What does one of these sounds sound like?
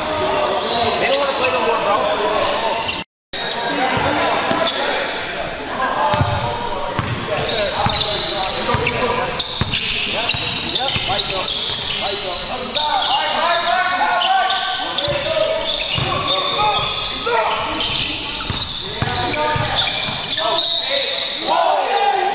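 Spectators chatter and call out in a large echoing hall.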